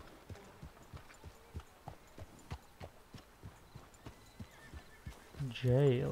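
A horse's hooves clop slowly on soft, muddy ground.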